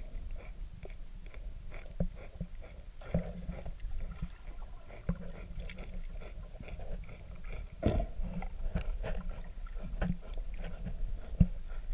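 A manatee chews seagrass underwater with soft crunching clicks.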